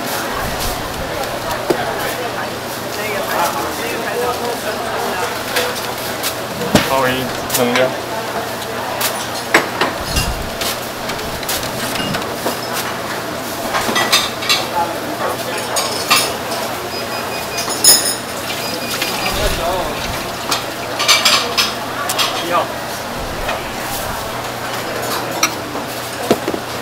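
Dishes and a knife tap and clink softly.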